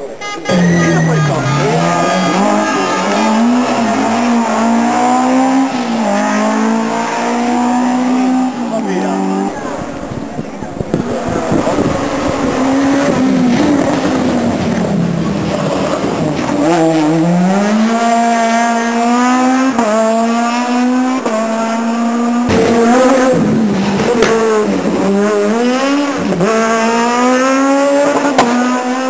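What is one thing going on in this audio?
A rally car engine roars and revs hard as it speeds past.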